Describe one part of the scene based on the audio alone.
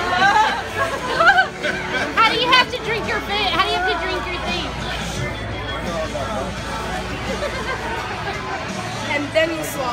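People chatter in the background of a busy room.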